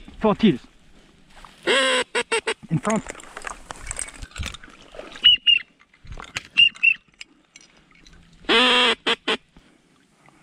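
Ducks quack on the water.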